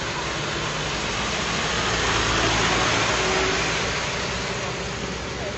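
A van's engine hums as it passes close by.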